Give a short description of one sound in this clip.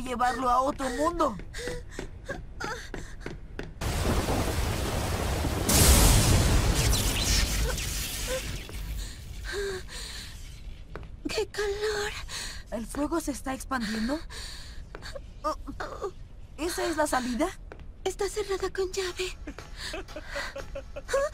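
A young woman speaks softly and anxiously.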